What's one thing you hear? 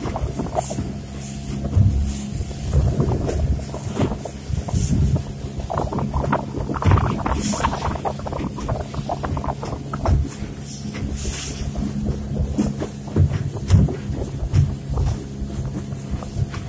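An outboard motor drones steadily.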